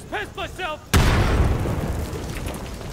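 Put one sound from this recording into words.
An explosion booms and rumbles nearby.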